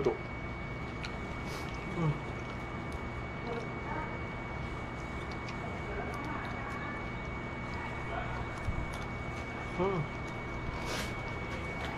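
A young man cracks crab shells with his fingers.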